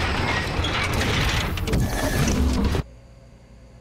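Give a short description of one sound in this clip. Steam hisses out of an opening lift.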